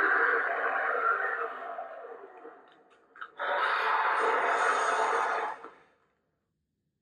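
A dragon lamp plays a loud roaring, crackling fire sound that fades, then surges back and cuts off.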